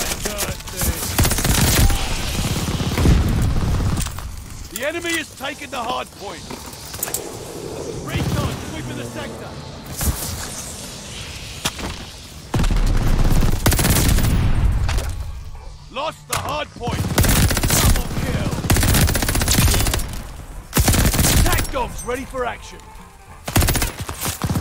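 A rifle fires in rapid bursts nearby.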